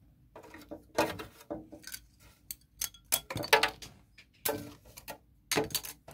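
Shredded plastic pieces clink and rustle.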